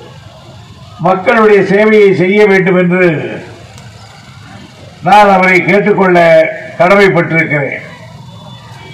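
An elderly man speaks loudly and forcefully into a microphone, heard outdoors through loudspeakers.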